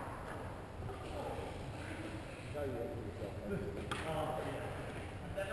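Young people chat at a distance in a large echoing hall.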